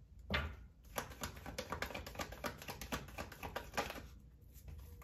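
Playing cards flick and riffle as they are shuffled by hand.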